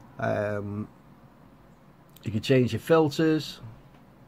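A plastic button clicks softly.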